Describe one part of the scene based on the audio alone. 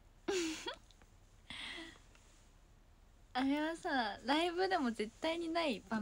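A young woman talks softly and playfully into a nearby microphone.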